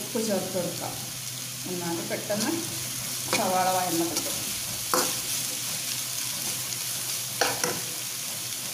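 A metal spatula scrapes and clatters against a pan while stirring.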